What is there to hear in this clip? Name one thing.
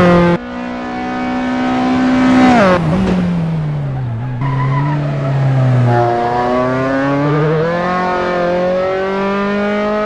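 A racing car engine roars, its pitch rising and dropping with each gear change.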